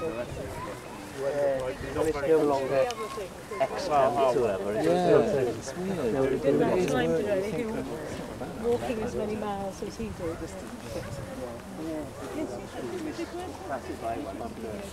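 Several people chat as they walk.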